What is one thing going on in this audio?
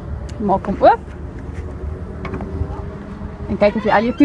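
A car boot latch clicks open.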